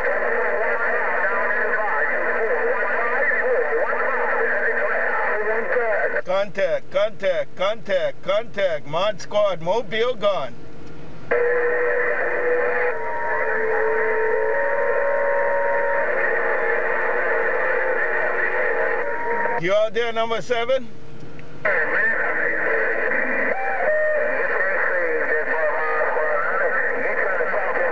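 A CB radio hisses and crackles with noisy reception.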